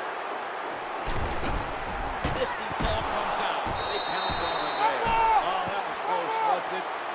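Players collide and tackle with thuds.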